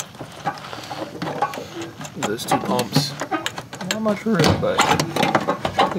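Plastic parts click and rattle as hands handle them.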